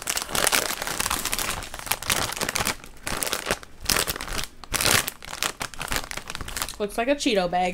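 A plastic snack bag crinkles and rustles close by.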